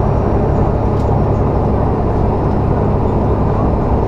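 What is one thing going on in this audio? A truck passes close by in the other direction.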